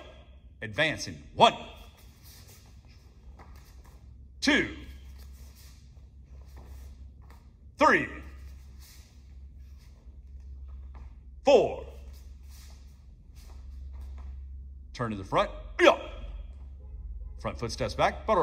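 Bare feet thump and slide on a padded mat.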